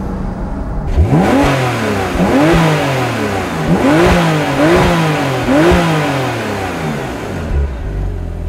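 A sports car engine revs up sharply several times, roaring loudly.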